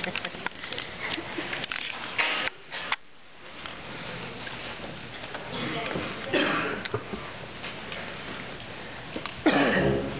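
A band plays in a large echoing hall.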